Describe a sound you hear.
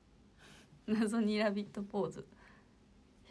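A young woman laughs.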